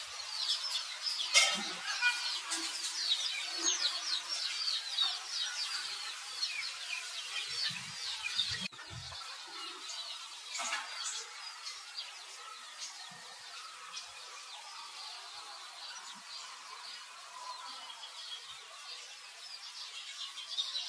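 A baby monkey suckles softly.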